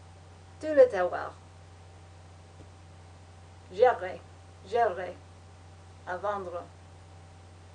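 A young woman speaks calmly in short phrases close by.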